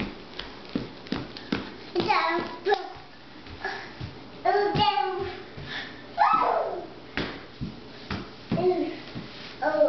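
Small feet patter on a wooden floor.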